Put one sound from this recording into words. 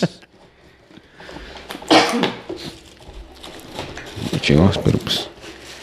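A cardboard box rustles and scrapes as it is handled.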